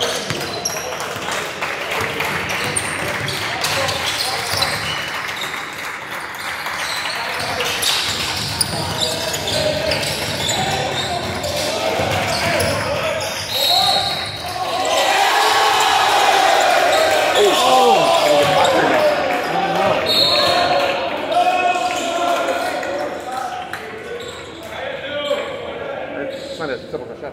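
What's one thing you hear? Young players shout and call out to each other on the court.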